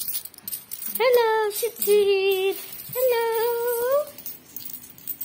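A young child speaks loudly in a high voice close by.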